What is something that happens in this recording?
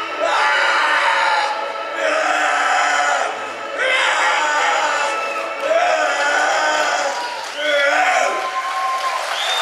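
A middle-aged man shouts with animation into a microphone.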